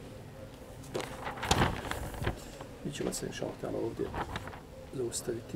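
Paper sheets rustle and flip.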